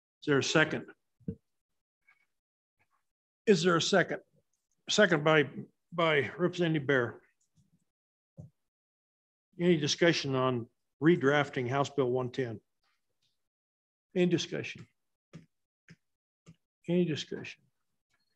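A man speaks calmly through a microphone, with pauses.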